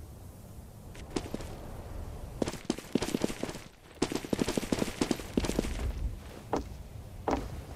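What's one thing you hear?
Quick footsteps patter across a hard floor.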